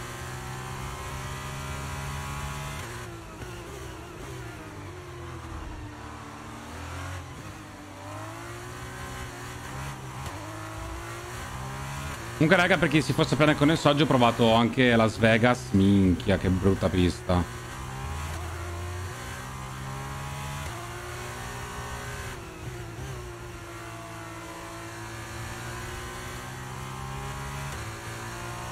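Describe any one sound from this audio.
A racing car engine whines and revs up and down as gears shift.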